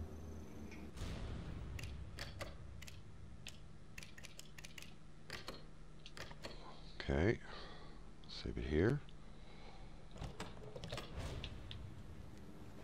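Short menu clicks and blips sound several times.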